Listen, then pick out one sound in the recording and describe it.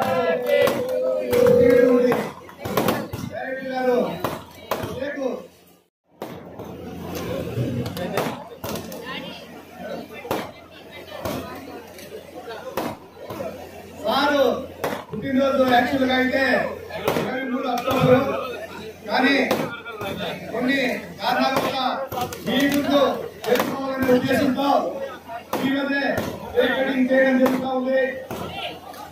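A crowd of men and women sings together loudly.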